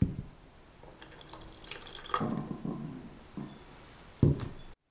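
Juice pours into a pot.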